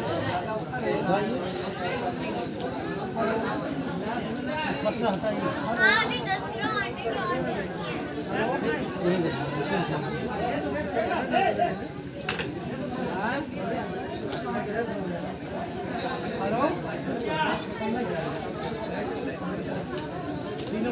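An elderly man chants steadily close by.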